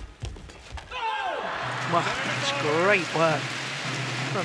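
A crowd cheers loudly in a large hall.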